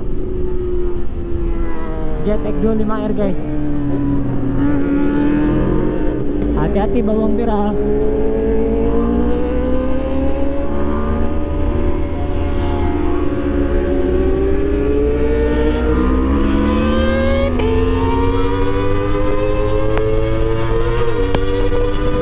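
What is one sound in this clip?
A motorcycle engine revs up and down close by.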